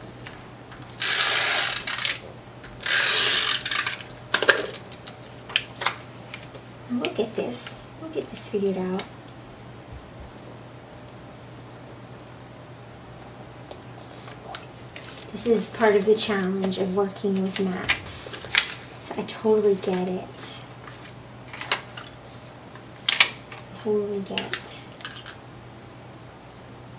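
Paper and cards rustle as they are handled.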